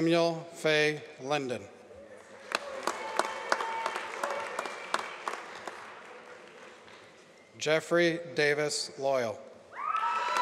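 A man announces names over a loudspeaker in a large echoing hall.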